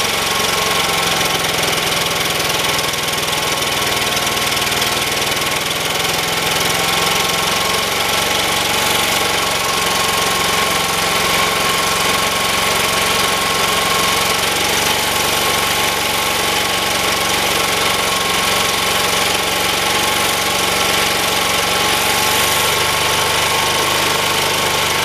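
A generator engine runs loudly and steadily close by.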